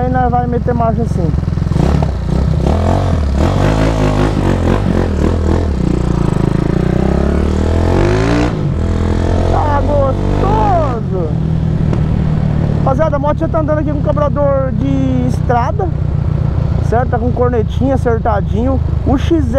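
A motorcycle engine rumbles up close, revving up and down as it rides.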